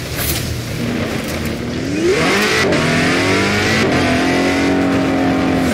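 A car engine revs up and rises in pitch as the car speeds away.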